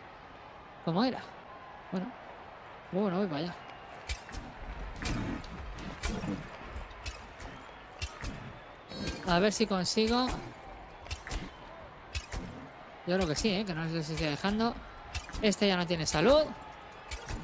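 Game sound effects clash and thud during a fight.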